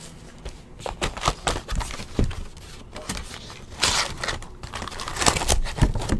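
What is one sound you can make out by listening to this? Plastic wrapping crinkles and rustles as a pack is torn open.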